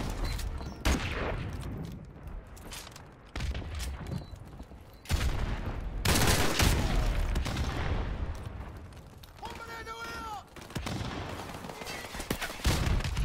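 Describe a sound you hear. Gunfire bursts out in loud, sharp rounds.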